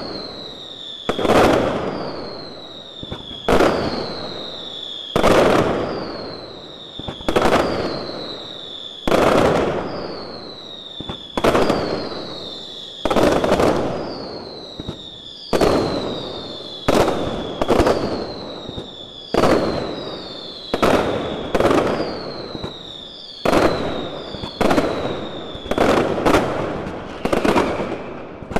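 Firework rockets whistle shrilly, each whistle falling in pitch before the bang.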